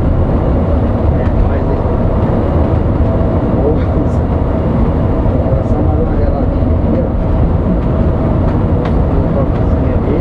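A large vehicle's engine rumbles steadily from inside the cab.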